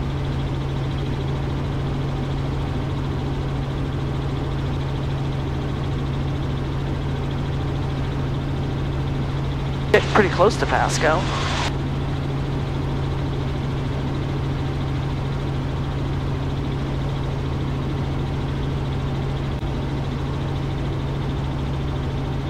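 A helicopter engine and rotor drone steadily from inside the cabin.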